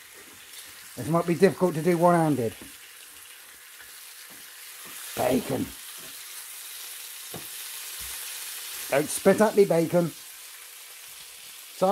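A wooden spatula scrapes and pushes across a frying pan.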